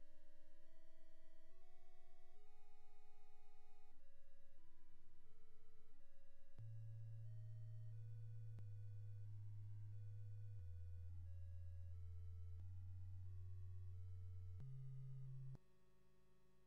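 Simple electronic music plays a beeping tune over a deep bass line.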